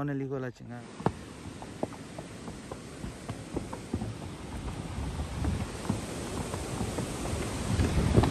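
Horse hooves clop on a wooden bridge.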